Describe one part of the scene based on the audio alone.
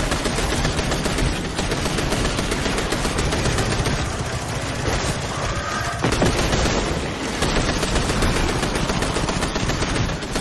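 Rapid gunfire rattles loudly and without a break.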